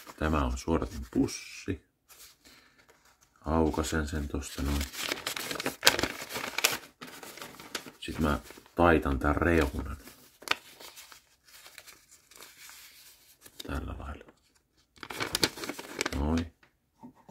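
A man talks calmly and close up.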